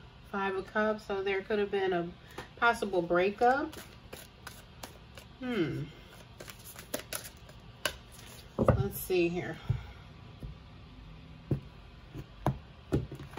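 Playing cards are handled and tapped together.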